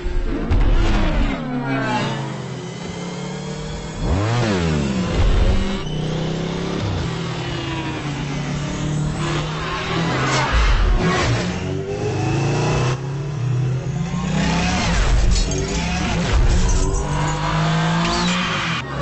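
Futuristic motorcycle engines whine and roar past, rising and falling in pitch.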